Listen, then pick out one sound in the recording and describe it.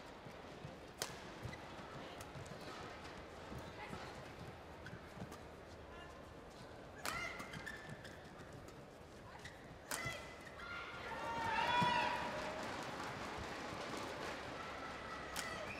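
Rackets strike a shuttlecock with sharp, quick pops.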